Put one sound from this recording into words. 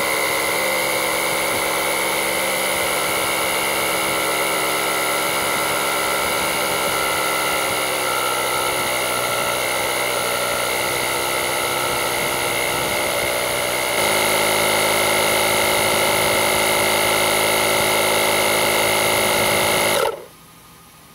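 An electric air compressor hums and buzzes loudly, then abruptly shuts off.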